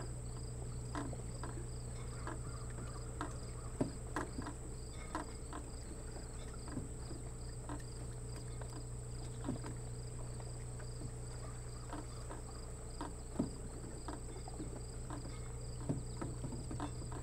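Gentle water laps and splashes softly against rocks.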